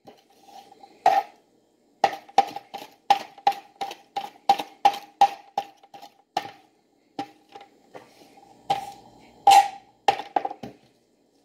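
A knife chops leaves on a cutting board with quick, sharp knocks.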